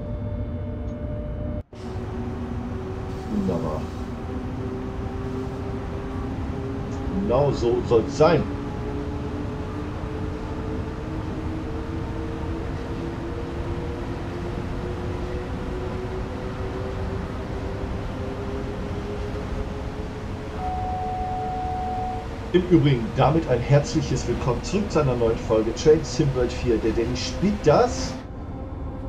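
A train rumbles along the track at high speed.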